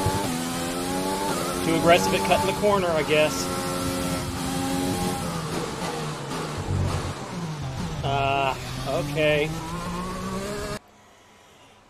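A racing car engine whines and revs loudly, shifting gears.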